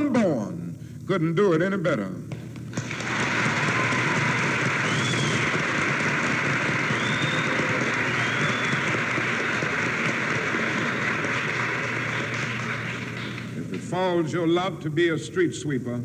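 A man speaks forcefully into a microphone, heard through loudspeakers.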